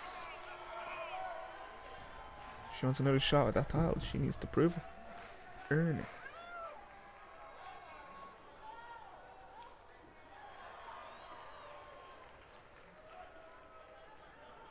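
A large crowd cheers and shouts in a big echoing arena.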